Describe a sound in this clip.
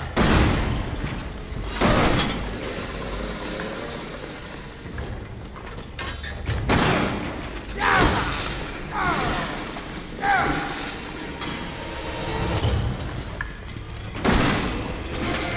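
A shotgun fires loud booming blasts.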